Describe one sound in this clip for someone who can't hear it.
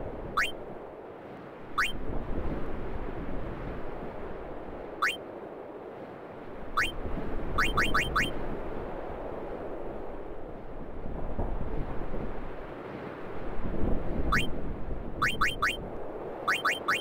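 Short rising electronic blips sound as a menu cursor moves, sometimes in quick runs.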